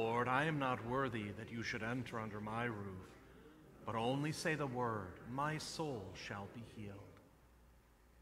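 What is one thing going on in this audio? A man sings a prayer through a microphone in an echoing hall.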